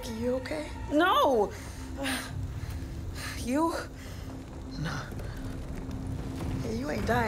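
A young woman speaks in a strained, breathless voice nearby.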